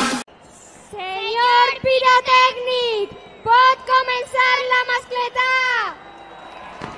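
A young girl calls out loudly through a microphone.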